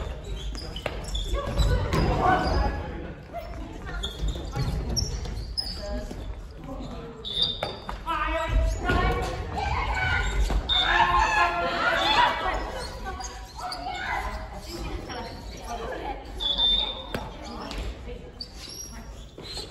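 Young men and women talk and call out, echoing in a large hall.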